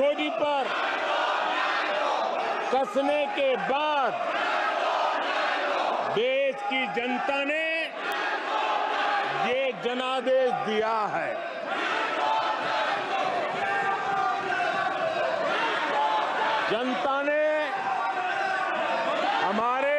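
A crowd murmurs and shouts in the background.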